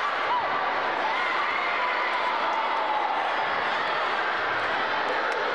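Many children shout and chatter in a large echoing hall.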